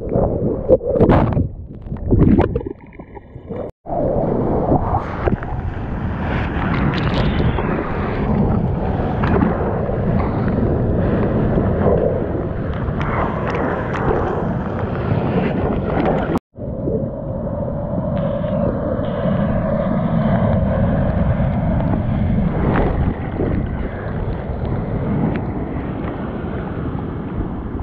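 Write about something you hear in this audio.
Water splashes and churns right beside a microphone.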